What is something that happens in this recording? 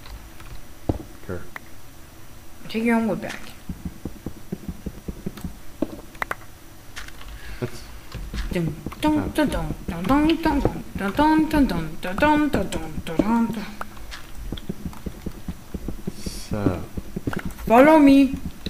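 A pickaxe taps and chips at stone in quick, repeated knocks.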